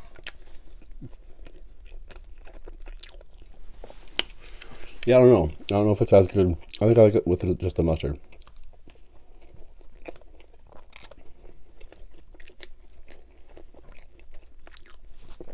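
Bread crust crackles and tears between fingers.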